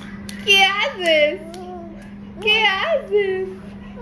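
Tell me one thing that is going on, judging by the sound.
A toddler claps hands.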